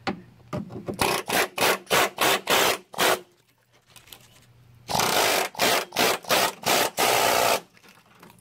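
An air hammer chatters loudly against rusty metal in repeated bursts.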